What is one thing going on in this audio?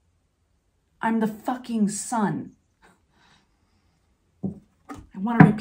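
A young woman speaks calmly and warmly, close by.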